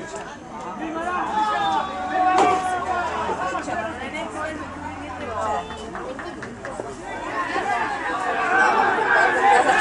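A group of boys in a huddle shout together.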